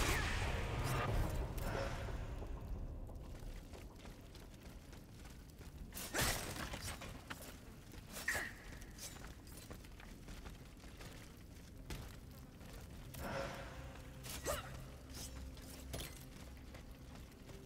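Footsteps crunch on gravel and wooden boards.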